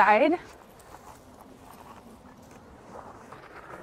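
A garden fork crunches into soil.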